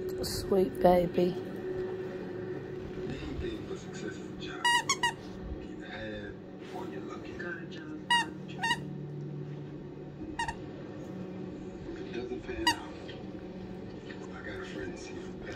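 A dog chews and gnaws on a plush toy.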